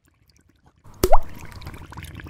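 A drop splashes into liquid.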